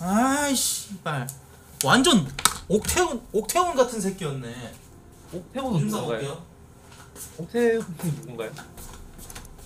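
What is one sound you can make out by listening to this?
A man talks animatedly and loudly into a close microphone.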